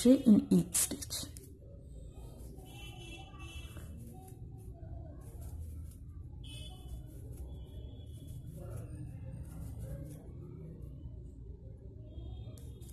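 A crochet hook softly rustles and pulls through yarn.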